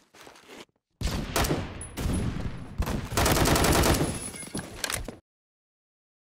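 A rifle fires in rapid bursts of loud gunshots.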